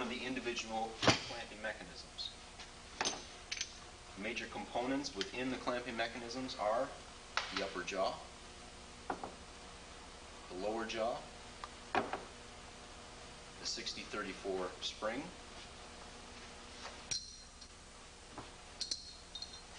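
Metal parts click and clack against each other.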